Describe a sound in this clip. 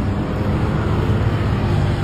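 A motorcycle rides past.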